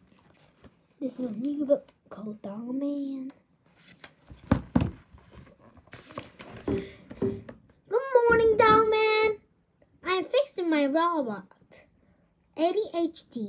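A young boy speaks with animation close to a microphone.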